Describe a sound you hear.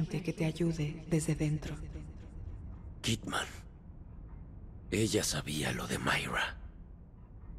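A man speaks in a low, strained voice close by.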